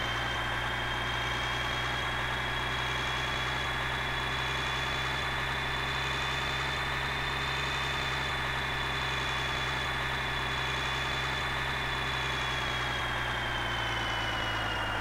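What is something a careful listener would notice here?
A heavy truck engine drones steadily, its pitch easing down near the end.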